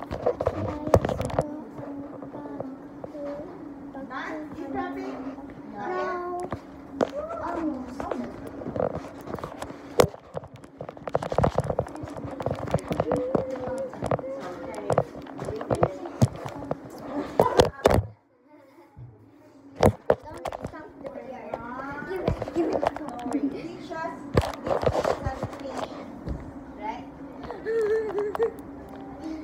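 A young girl talks animatedly close to a phone's microphone.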